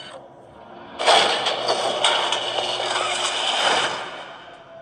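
A heavy metal door slides open with a loud rumbling whoosh.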